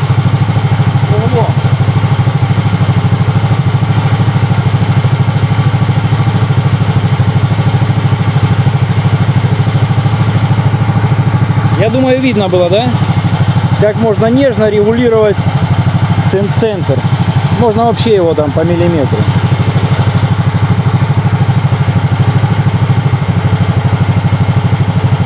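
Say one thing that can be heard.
An engine idles with a steady low chugging throughout.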